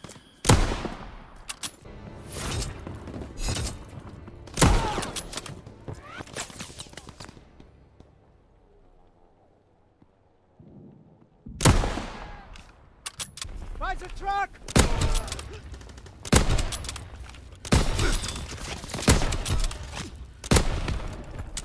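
Rifle shots crack loudly, one at a time, with a short echo after each.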